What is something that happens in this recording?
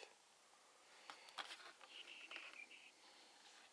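Plastic packaging crinkles and rustles in a hand.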